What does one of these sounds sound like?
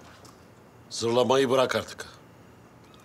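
A middle-aged man speaks sharply, close by.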